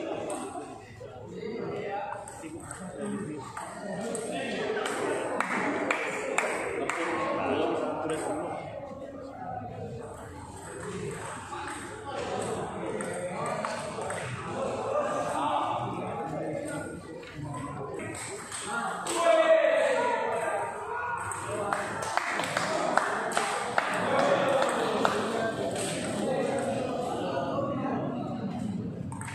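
Table tennis balls click on paddles and tables in a large echoing hall.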